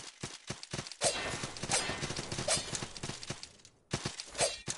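Debris crashes and scatters.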